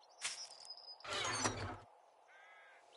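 A wooden chest lid opens with a creak.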